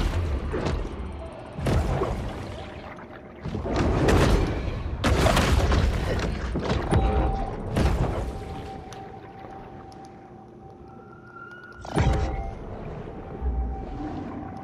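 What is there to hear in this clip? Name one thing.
Water rushes and swirls around a large swimming creature.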